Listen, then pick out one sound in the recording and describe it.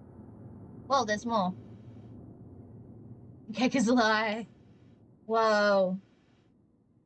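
A young woman speaks animatedly into a microphone in short bursts.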